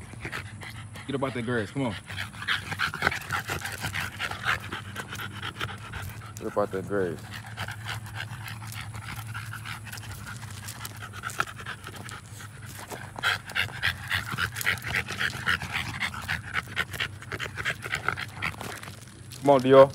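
A dog pants quickly and heavily.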